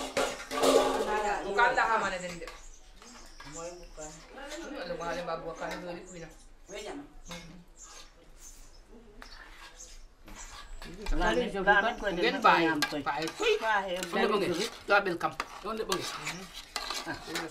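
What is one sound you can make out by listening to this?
Women talk with animation close by.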